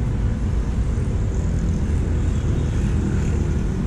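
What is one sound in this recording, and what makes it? Motorbike engines hum in passing traffic.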